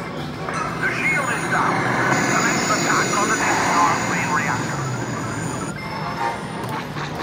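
An arcade game plays loud electronic music and sound effects.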